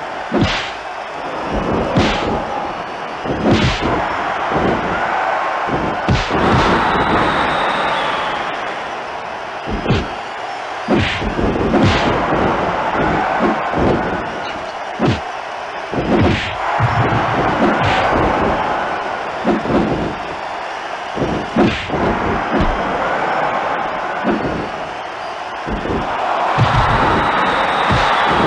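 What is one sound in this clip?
Punches and slams thud sharply, over and over.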